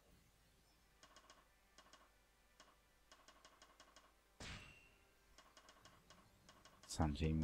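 Short electronic menu ticks click in quick succession.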